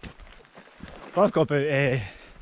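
A man speaks close up, calmly.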